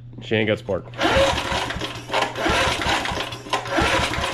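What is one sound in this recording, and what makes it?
Metal parts of a lawn mower engine rattle and scrape under a hand.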